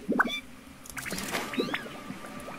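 Wings snap open with a sharp whoosh.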